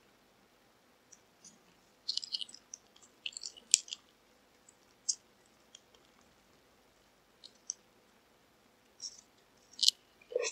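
Fried chicken crackles as fingers tear it apart.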